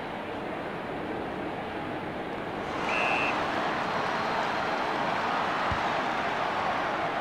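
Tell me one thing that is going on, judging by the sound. A large stadium crowd roars steadily, and the roar swells.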